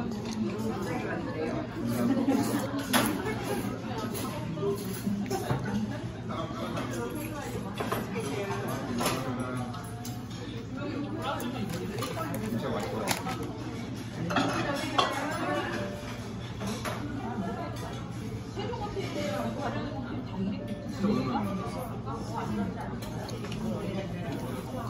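A fork clinks and scrapes against a bowl.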